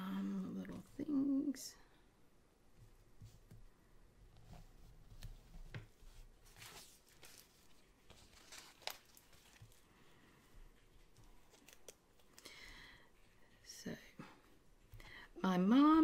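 A sticker peels off a backing sheet.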